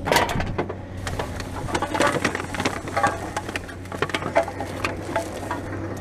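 Plastic bags rustle and crinkle close by.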